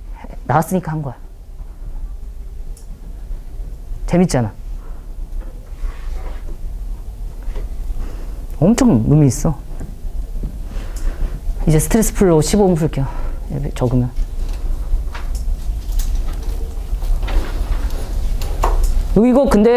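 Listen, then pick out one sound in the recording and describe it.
A man lectures calmly through a microphone, with pauses between phrases.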